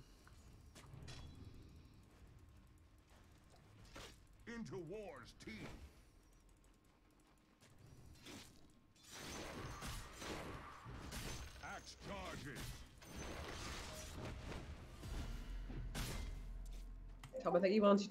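Video game battle sounds clash and crackle.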